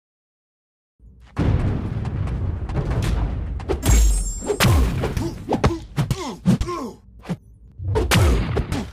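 Game fight sound effects crash, whoosh and thud in quick succession.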